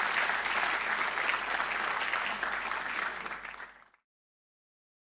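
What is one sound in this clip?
A large audience applauds in an echoing hall, then the clapping fades away.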